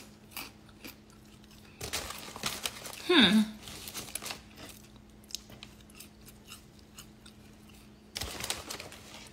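A young woman bites into crunchy food and chews loudly close up.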